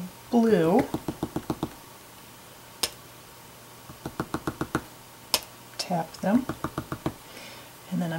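A wooden tool dabs and taps lightly on paper in quick bursts.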